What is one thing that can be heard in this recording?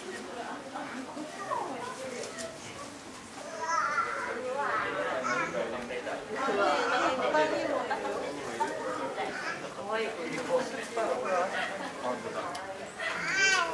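Visitors chatter in a large, echoing indoor hall.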